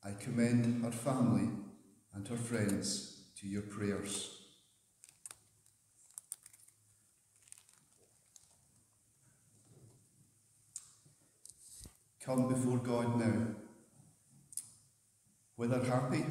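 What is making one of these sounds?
A middle-aged man speaks calmly into a headset microphone in a large echoing room.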